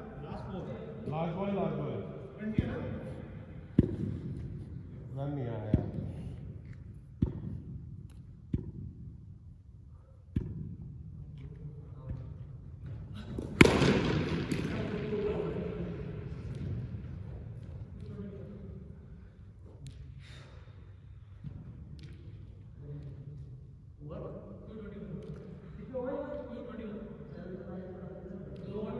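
Men call out and talk nearby in an echoing hall.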